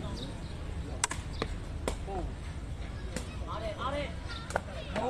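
A ball is kicked with sharp thumps.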